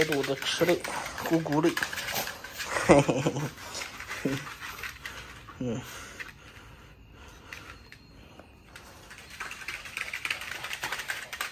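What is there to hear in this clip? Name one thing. A small dog's claws scrabble on a hard floor.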